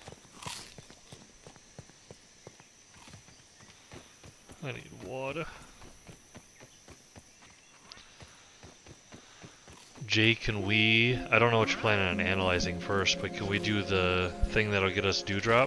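Footsteps patter steadily on soft dirt.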